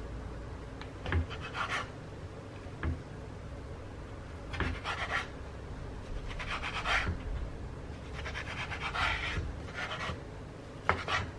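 A knife slices through meat on a wooden board.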